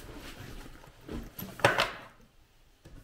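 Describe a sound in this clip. A fabric bag rustles as it is pushed into a locker.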